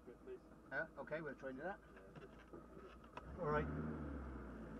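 A man speaks briefly nearby, heard from inside a car.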